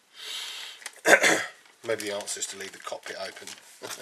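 A plastic bag crinkles and rustles in someone's hands.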